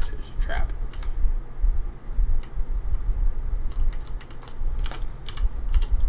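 Game sound effects click and chime.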